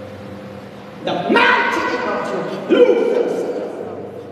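Several women pray aloud and cry out nearby.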